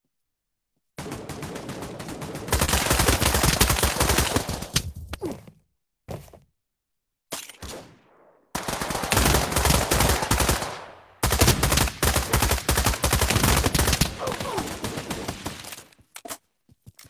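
A machine gun fires.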